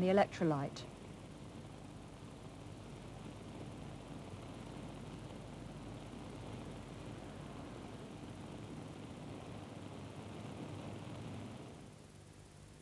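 Liquid fizzes softly with tiny bubbles.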